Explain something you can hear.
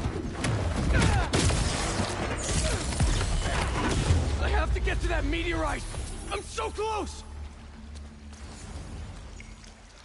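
Water splashes heavily.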